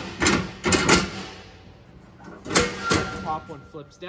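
Metal steps clank as they are folded and unfolded.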